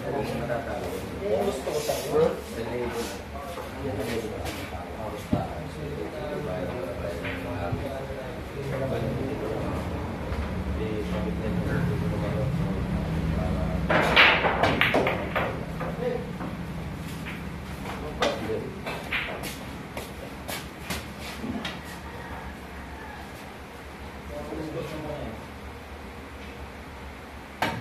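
Young men chat nearby.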